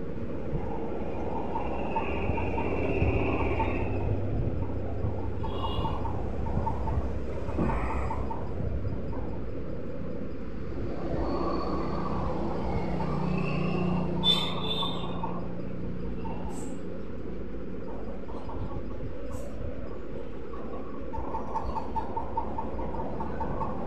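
A bus engine hums steadily as the bus drives along.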